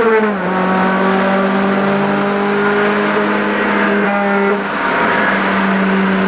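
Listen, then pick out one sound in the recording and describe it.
A car engine drones loudly and steadily from inside the car, shifting pitch as it changes gear.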